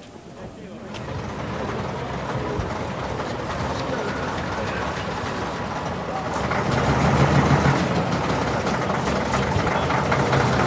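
A bus engine rumbles as a bus pulls slowly closer.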